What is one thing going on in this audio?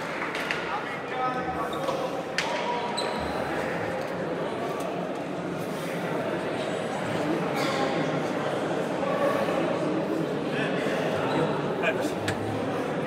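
A ball smacks sharply against a hard floor and wall.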